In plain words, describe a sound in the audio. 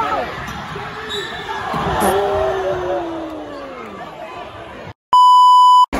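A crowd cheers loudly in an echoing gym.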